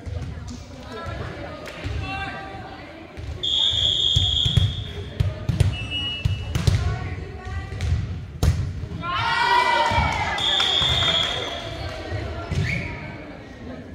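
Young women shout and call out during play.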